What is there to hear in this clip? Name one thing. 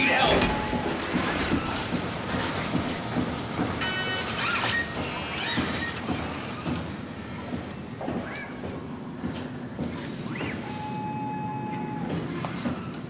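Footsteps clank on metal floors and stairs.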